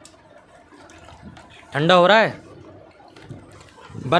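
Water sloshes in a bucket as a hand stirs it.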